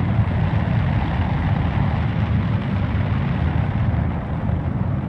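A spacecraft's engines roar with a steady deep rumble.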